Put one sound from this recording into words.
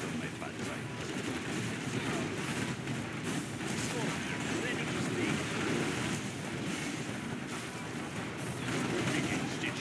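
Gunfire rattles in a battle.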